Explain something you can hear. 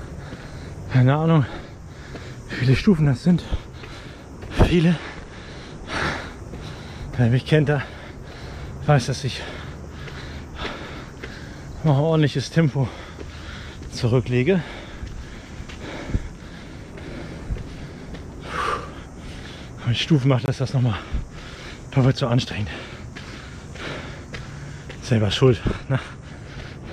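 A young man talks casually and a little breathlessly, close to the microphone.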